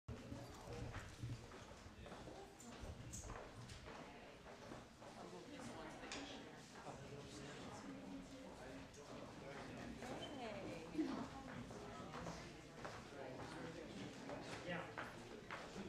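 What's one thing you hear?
Several men and women chat at once in a room with some echo.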